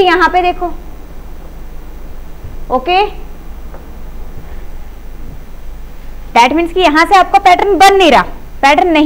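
A young woman speaks clearly and with animation into a close microphone, with pauses.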